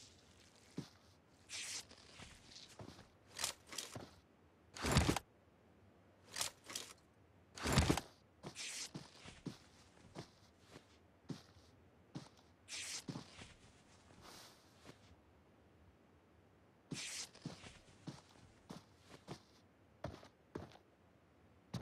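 Footsteps rustle through grass and dirt at an irregular pace.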